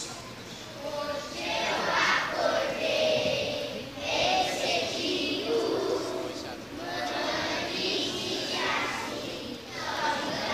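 Children chatter quietly in the background.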